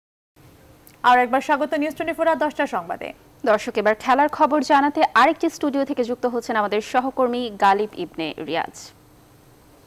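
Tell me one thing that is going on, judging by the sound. A young woman reads out the news clearly through a microphone.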